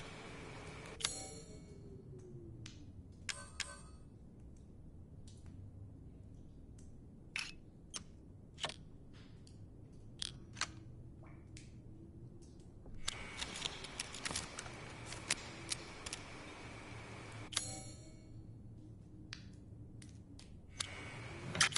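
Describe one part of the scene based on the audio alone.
Menu selections click and tick softly.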